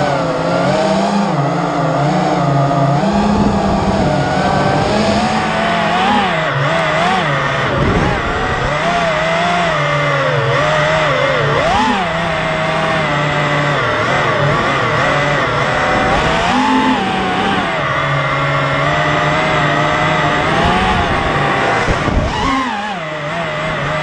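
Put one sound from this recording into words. Small drone motors whine loudly, rising and falling in pitch as the drone speeds up and slows down.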